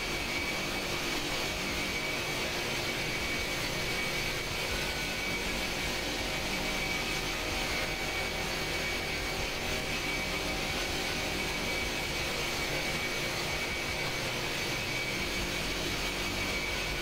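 Jet engines roar steadily in flight.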